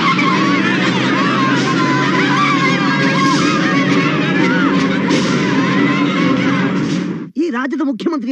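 A large crowd shouts and cheers excitedly outdoors.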